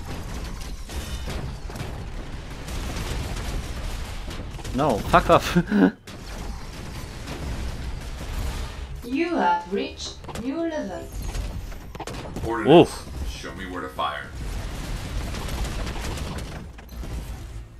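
Laser guns fire in rapid bursts with electronic zaps.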